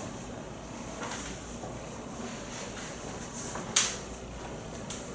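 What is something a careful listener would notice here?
Paper rustles and crinkles in a person's hands.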